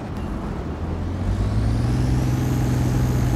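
A large diesel engine starts up and hums, rising in pitch.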